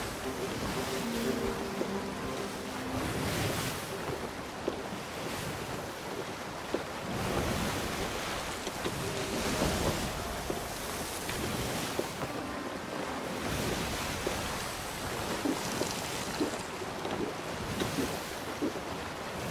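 Waves surge and wash against a boat in strong wind.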